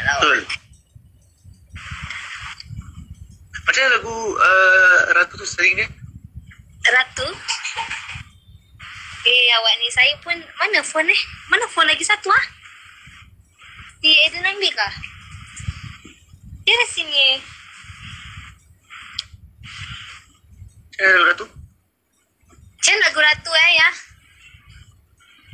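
A young man talks through a phone call.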